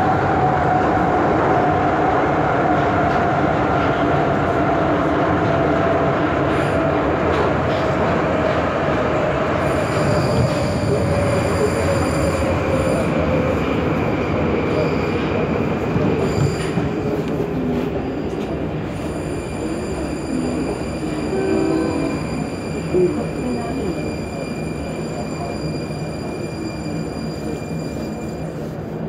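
A subway train hums and rumbles nearby in an echoing underground space.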